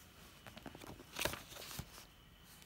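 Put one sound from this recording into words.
Book pages flip and rustle.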